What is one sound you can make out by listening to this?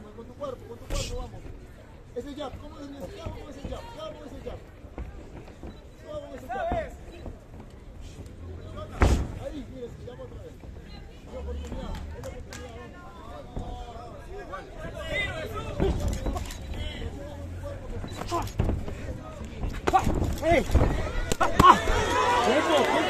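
Gloved punches thud against bodies and headgear.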